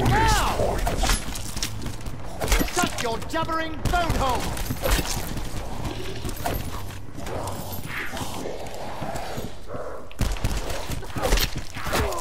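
Blows strike with heavy thuds.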